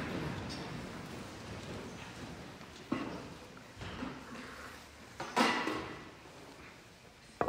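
A man speaks quietly into a microphone in an echoing hall.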